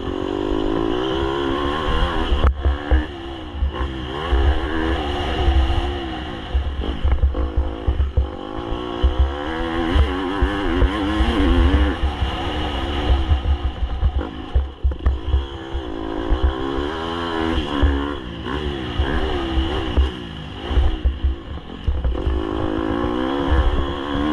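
Wind rushes hard past the rider.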